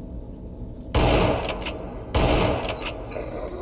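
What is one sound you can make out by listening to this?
A gun fires two loud, booming shots close by.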